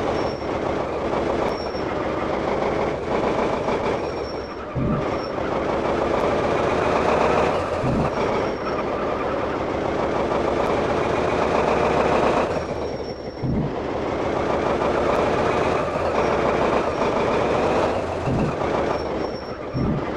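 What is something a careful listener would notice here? A motorhome engine hums steadily as it drives along.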